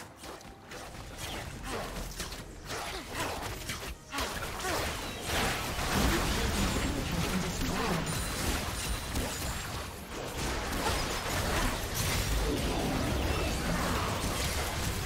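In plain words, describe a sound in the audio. Game spell effects whoosh, zap and crash in a busy battle.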